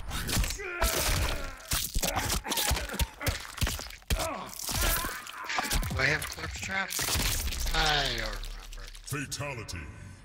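Flesh squelches and tears.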